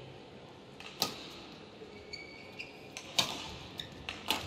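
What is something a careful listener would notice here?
A racket smacks a shuttlecock back and forth in sharp cracks.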